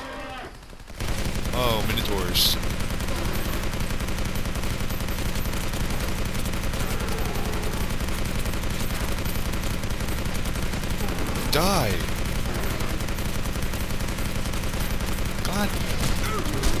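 A machine gun fires rapid, continuous bursts.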